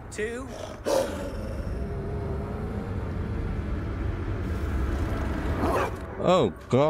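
A dog growls deeply.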